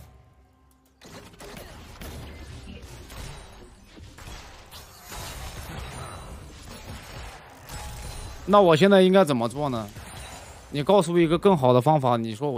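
Game sound effects of fighting play.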